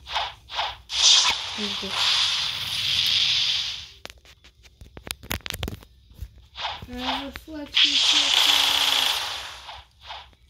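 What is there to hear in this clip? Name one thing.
A fiery blast whooshes and roars.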